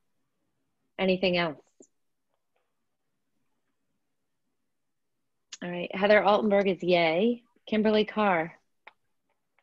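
A middle-aged woman speaks through an online call.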